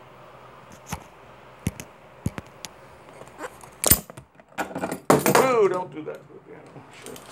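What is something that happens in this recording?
A phone knocks and rubs as it is handled close up.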